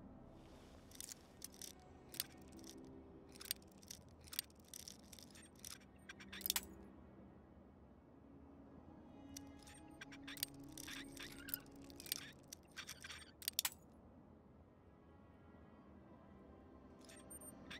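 Metal lock pins click and scrape as a lock is picked.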